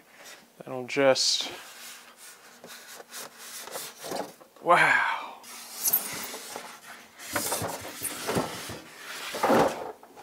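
Cardboard packaging scrapes and rustles as it is handled.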